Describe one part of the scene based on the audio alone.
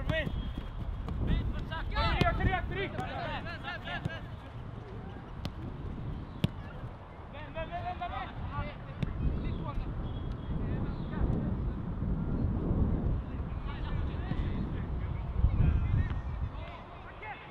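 Wind blows over the microphone outdoors.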